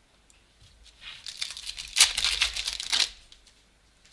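Plastic card sleeves crinkle and rustle close by.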